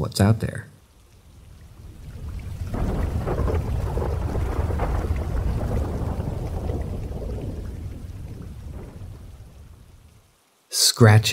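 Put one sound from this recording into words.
Rain falls steadily on grass and trees.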